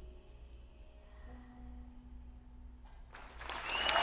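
A young woman sings softly into a microphone.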